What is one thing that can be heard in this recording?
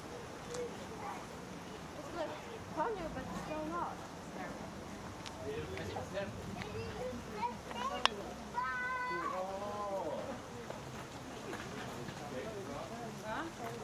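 Young girls chatter and call out nearby outdoors.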